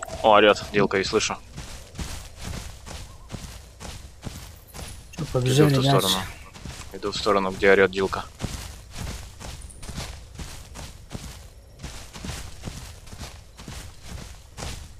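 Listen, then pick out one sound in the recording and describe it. Heavy footsteps thud steadily over grass and rocks.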